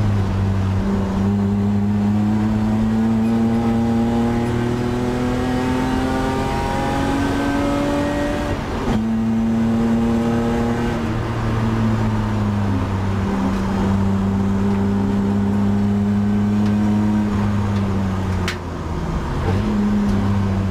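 A race car engine roars loudly from inside the cabin, revving up and dropping through the gears.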